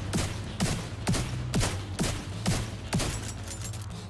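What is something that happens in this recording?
A rifle fires single shots in a steady rhythm.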